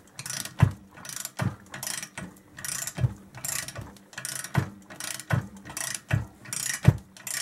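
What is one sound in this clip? A metal tool thumps at the bottom of each stroke.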